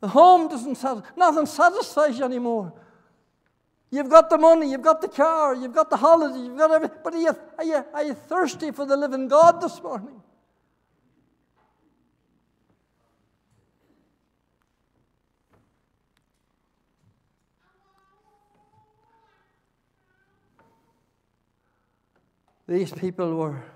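An elderly man speaks with animation through a microphone in a large room.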